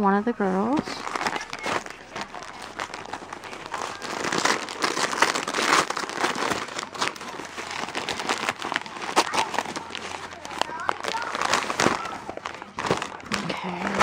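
Wrapping paper crinkles and rustles up close as it is torn open.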